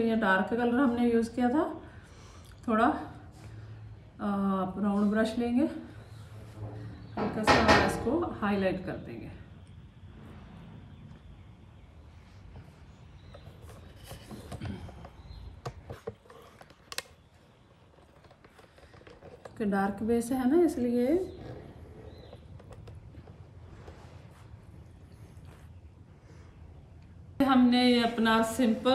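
A middle-aged woman speaks calmly and clearly, close to the microphone.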